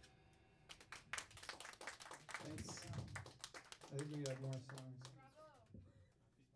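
Electric guitar chords are strummed loudly and briefly.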